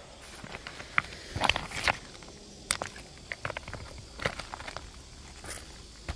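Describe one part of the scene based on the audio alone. Stones click and knock against each other as a hand moves them.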